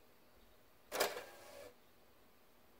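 A game console whirs as it ejects a disc.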